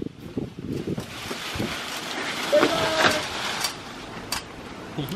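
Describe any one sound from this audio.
Branches rustle and crash as a tree is cut back.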